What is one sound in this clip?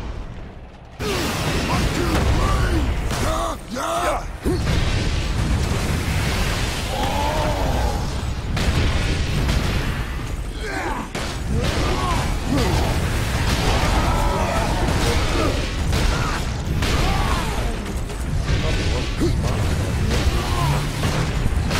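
Heavy weapons clash and crunch in a fierce melee fight.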